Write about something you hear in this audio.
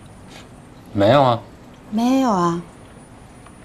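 A young woman answers in surprise, close by.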